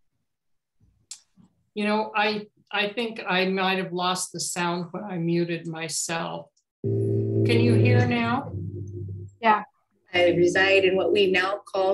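An elderly woman speaks calmly through an online call.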